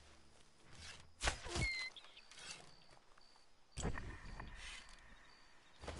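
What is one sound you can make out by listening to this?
A bow string twangs as an arrow is loosed.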